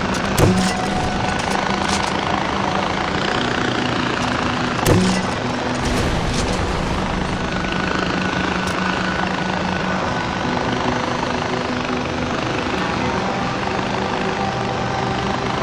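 A small aircraft engine drones steadily.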